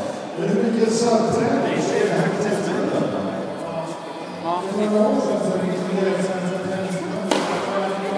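A ball machine thumps as it launches tennis balls.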